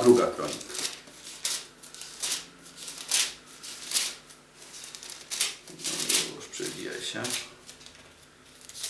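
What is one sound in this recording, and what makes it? Book pages rustle and flip.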